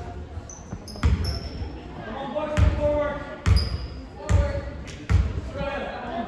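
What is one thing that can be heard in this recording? A basketball bounces on a wooden floor with hollow thumps in an echoing gym.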